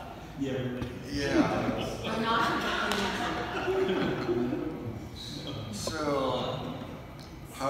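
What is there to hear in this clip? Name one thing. A middle-aged man speaks warmly through a microphone in an echoing hall.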